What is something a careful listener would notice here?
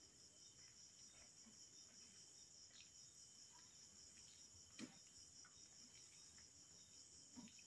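Food rustles softly as a man picks it up with his fingers.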